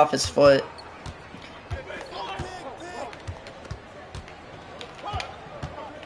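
A basketball bounces steadily on a hard court.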